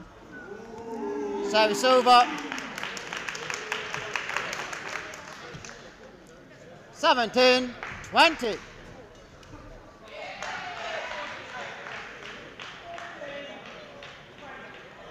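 A crowd claps and cheers in a large hall.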